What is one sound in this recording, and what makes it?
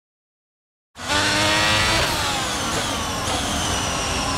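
A Formula One car engine revs high and shifts up through the gears.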